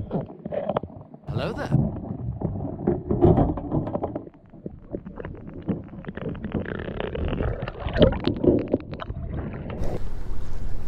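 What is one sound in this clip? Muffled underwater rumbling and clicking fills the water.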